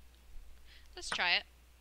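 A young woman exclaims in a rising voice over an online call.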